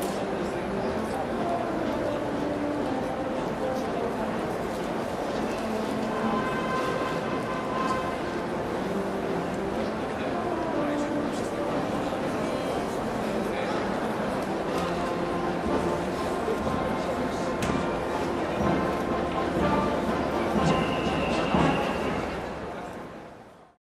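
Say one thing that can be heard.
A large crowd murmurs in the stands.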